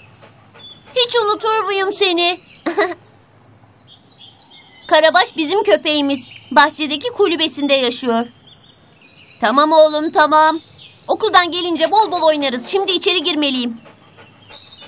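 A young boy speaks cheerfully and close by.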